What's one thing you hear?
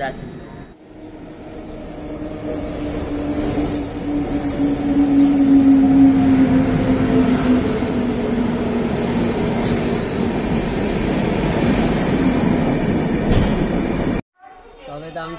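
A train rumbles and clatters loudly past close by.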